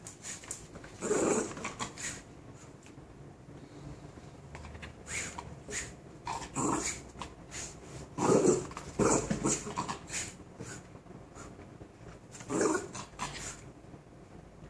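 A small dog barks and growls playfully nearby.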